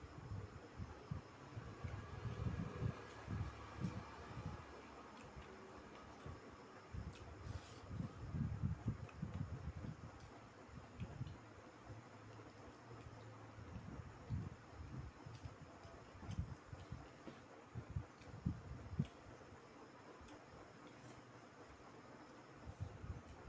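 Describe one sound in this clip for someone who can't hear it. Two men chew and slurp food noisily up close.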